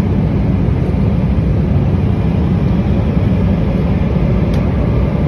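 A jet engine roars steadily in a muffled, deep rumble, heard from inside an airliner cabin.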